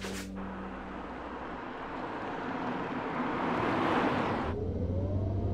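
A car engine hums as it approaches on a road.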